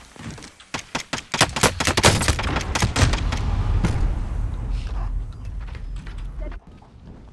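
Explosions boom and crackle nearby.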